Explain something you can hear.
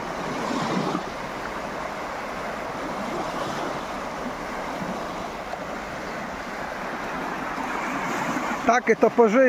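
Small waves wash and lap gently onto a shore.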